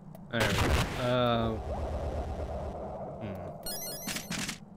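Electronic video game sound effects chime and bleep.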